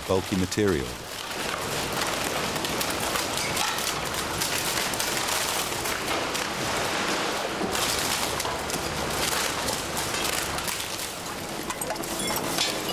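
A shredder grinds and crunches waste.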